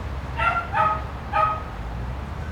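A small dog barks sharply a few times nearby.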